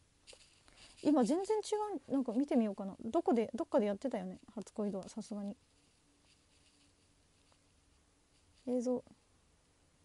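A young woman speaks softly and casually close to a microphone.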